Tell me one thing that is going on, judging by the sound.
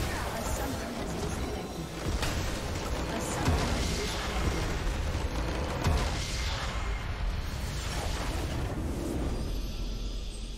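Game spell effects crash and whoosh in a loud battle.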